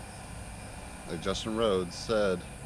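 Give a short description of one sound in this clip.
A bearded man talks outdoors, close by.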